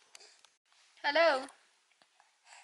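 A baby squeals loudly in a high, wavering voice.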